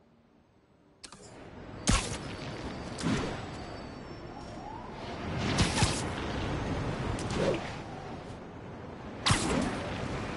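Wind rushes loudly past in strong gusts.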